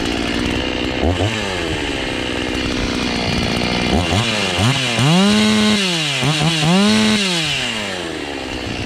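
A chainsaw engine revs up and down several times.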